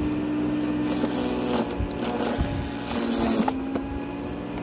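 Twigs crack and crunch as a shredder chews them up.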